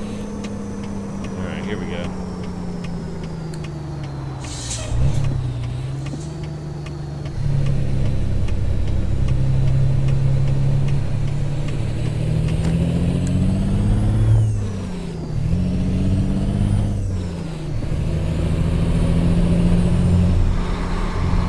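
A heavy truck engine drones steadily, its pitch rising and dropping with each gear change.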